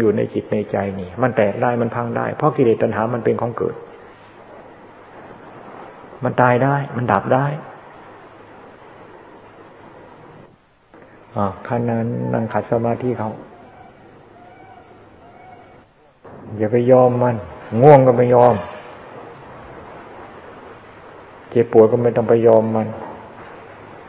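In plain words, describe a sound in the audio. An elderly man speaks calmly in bursts, with pauses between them.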